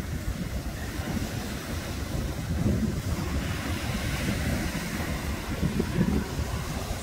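Waves break and wash onto a pebbly shore.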